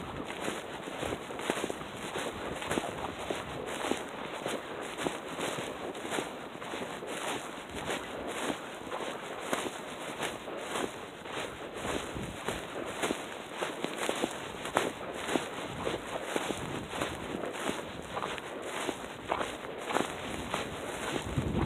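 Footsteps crunch steadily through packed snow.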